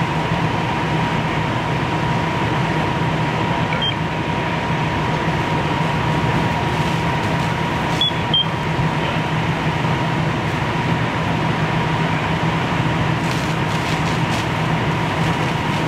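A fire engine's pump hums steadily.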